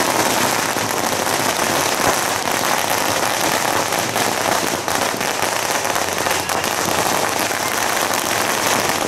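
Firecrackers crackle and pop rapidly nearby without pause.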